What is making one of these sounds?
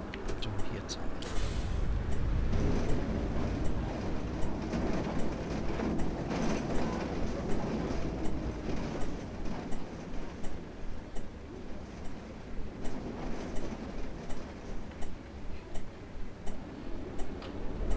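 A turn signal clicks at an even pace.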